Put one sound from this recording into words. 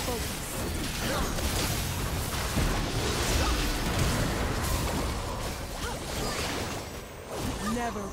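Magic spells crackle and whoosh in a fast video game battle.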